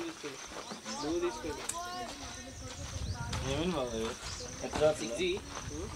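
Men talk calmly nearby outdoors.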